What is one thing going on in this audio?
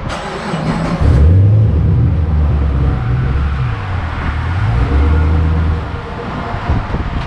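A car engine starts and rumbles deeply at idle.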